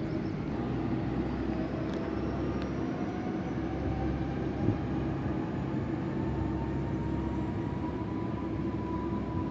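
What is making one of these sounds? An electric train's motor whines, rising steadily in pitch.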